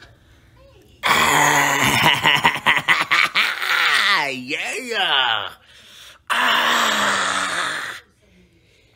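A man laughs loudly and heartily close up.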